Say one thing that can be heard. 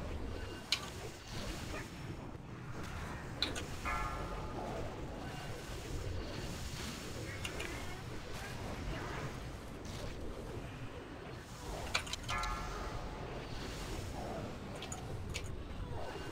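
Magic spells crackle and blast in a battle.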